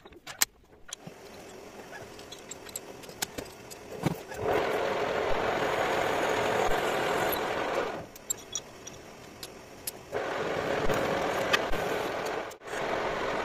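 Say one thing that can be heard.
A lathe motor hums and whirs.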